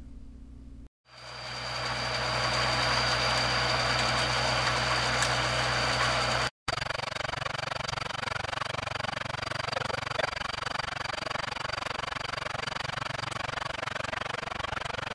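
A drilling rig's engine runs with a steady hum.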